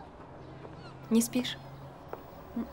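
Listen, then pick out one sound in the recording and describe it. A middle-aged woman asks a quiet question.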